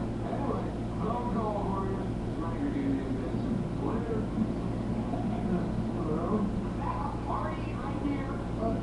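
A young man talks close to a headset microphone.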